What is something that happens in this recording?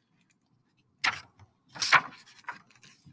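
A paper page rustles as it turns.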